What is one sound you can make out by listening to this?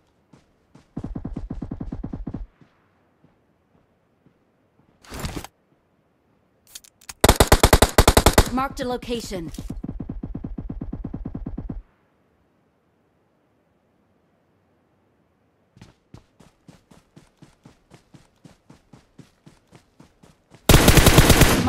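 Rapid gunfire bursts ring out in loud volleys.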